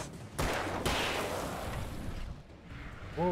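Two gunshots ring out in quick succession and echo.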